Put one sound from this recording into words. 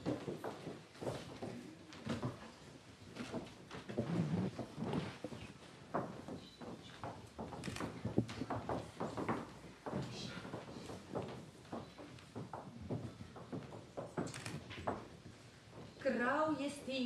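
Women speak on a stage, heard from a distance in a hall.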